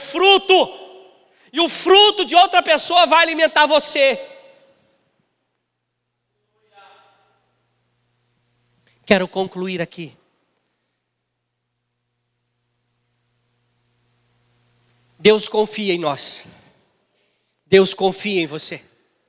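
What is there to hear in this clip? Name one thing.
A man speaks with animation through a microphone, pausing often.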